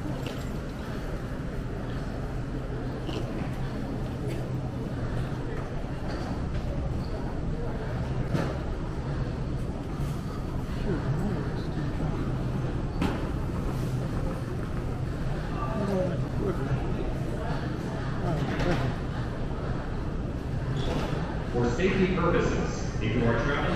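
Men and women chatter nearby and in the distance in a large echoing hall.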